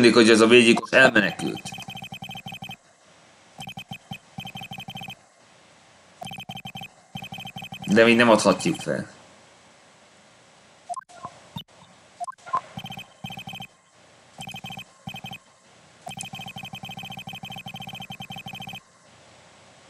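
Short electronic blips tick rapidly in quick bursts.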